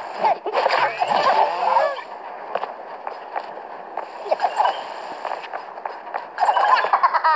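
Bright electronic chimes and whooshes ring out in quick bursts.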